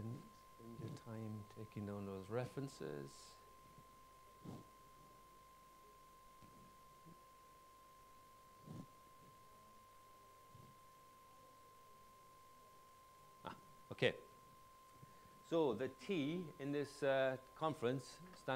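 A man lectures calmly through a microphone, with pauses.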